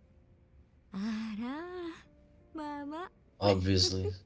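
A baby fusses and whimpers.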